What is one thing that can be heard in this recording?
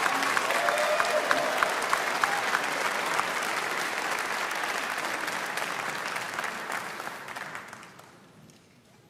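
An audience applauds loudly in a large hall, then the applause fades away.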